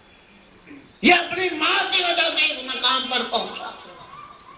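A middle-aged man speaks forcefully into a microphone, heard through a loudspeaker.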